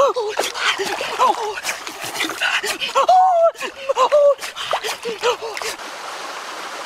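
Water splashes and sloshes as a basket is lifted from a river.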